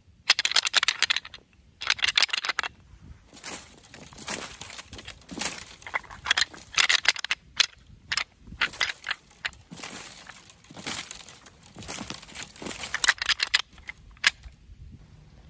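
A man whispers close to the microphone.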